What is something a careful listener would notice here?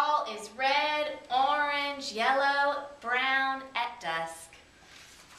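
A woman reads aloud expressively, close to a microphone.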